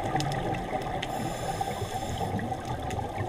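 A scuba diver's exhaled bubbles gurgle and rush underwater.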